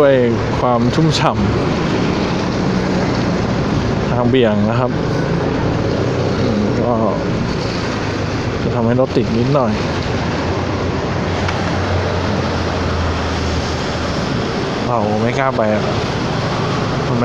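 Car and truck traffic rumbles along a wet road.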